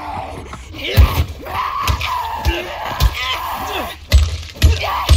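Heavy blows thud into a body.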